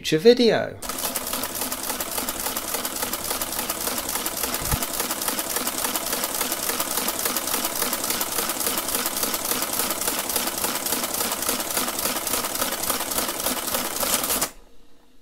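A mechanical calculator runs with a fast, steady clatter.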